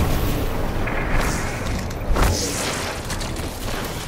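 A rifle fires loud shots.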